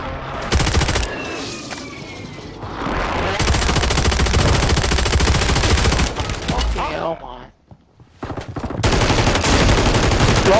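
A machine gun fires rapid, loud bursts.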